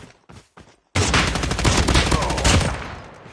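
An automatic rifle fires a rapid, loud burst.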